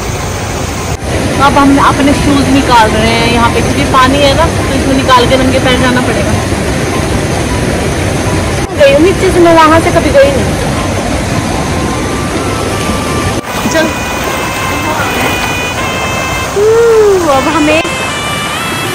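A stream rushes steadily over rocks.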